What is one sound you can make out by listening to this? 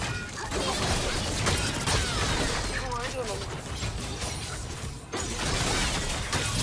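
Magic spells crackle and burst in a hectic fight.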